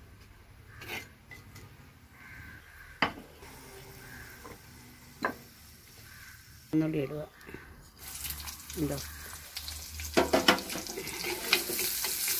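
A metal spoon scrapes and stirs in a clay pot.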